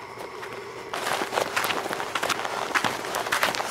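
Wind rustles and flaps a hooded rain jacket close by.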